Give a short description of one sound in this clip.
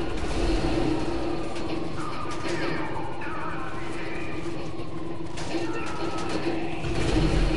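A helicopter's rotor thuds overhead.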